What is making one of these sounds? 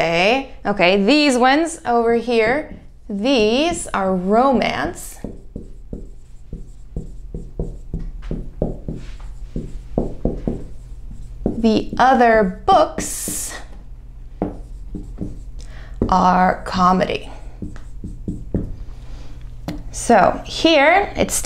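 A young woman speaks clearly and calmly, close by.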